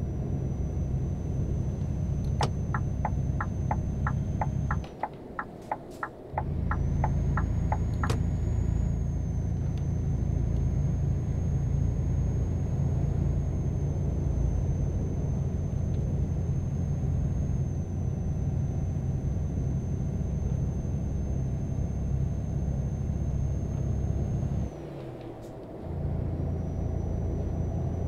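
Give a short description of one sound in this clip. A truck engine drones steadily, dropping away briefly now and then.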